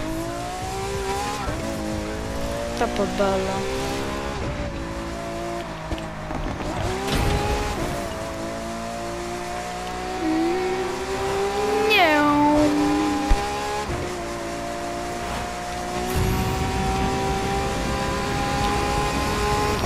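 A sports car engine roars at high revs, shifting gears as it accelerates.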